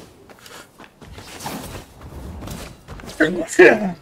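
A heavy thud sounds as someone lands on a wooden roof.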